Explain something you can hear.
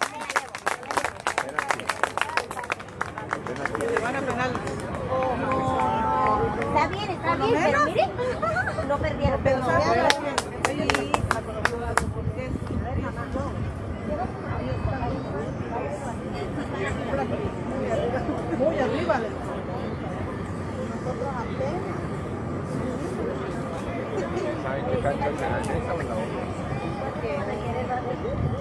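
Young men shout to each other outdoors in the distance.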